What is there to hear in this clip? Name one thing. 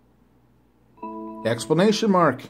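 A phone gives a short electronic chime.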